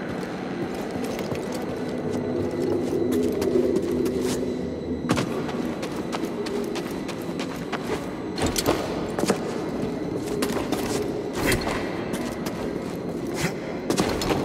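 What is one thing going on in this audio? Footsteps thud and scrape on stone.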